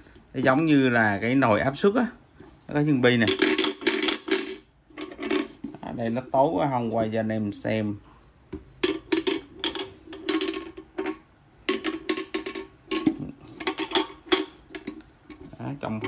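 A metal kettle handle clinks and rattles as it is handled.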